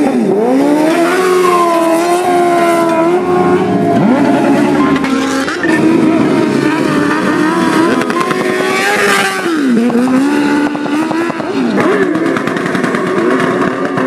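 A motorcycle engine revs loudly, rising and falling in pitch.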